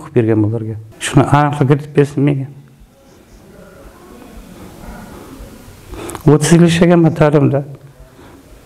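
An older man speaks slowly and weakly, close by, with pauses.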